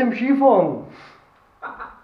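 An older man speaks cheerfully close by.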